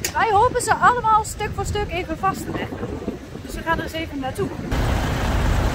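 A young woman speaks close to the microphone.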